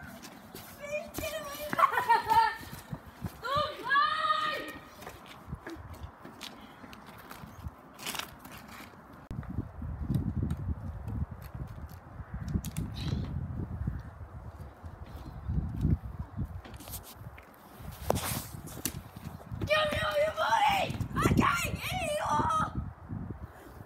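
Young boys shout and laugh excitedly nearby.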